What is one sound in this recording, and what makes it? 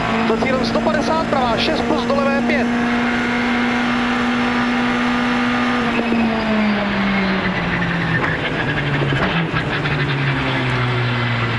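A rally car engine roars steadily, then drops in pitch as the car slows.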